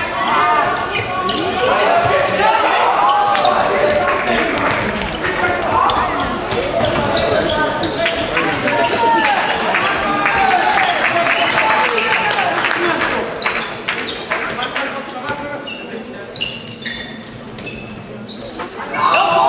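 Young players shout to each other across the hall.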